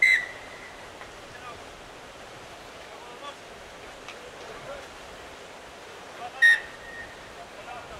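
A referee's whistle blows in short sharp blasts outdoors.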